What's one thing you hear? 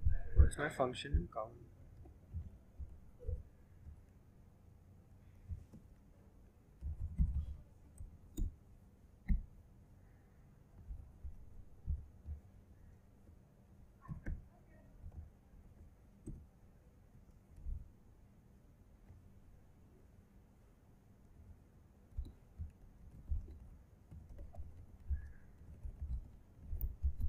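Keys click on a laptop keyboard in quick, uneven bursts.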